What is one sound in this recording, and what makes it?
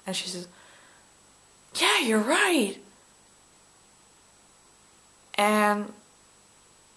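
A young woman speaks close to the microphone in short, expressive bursts.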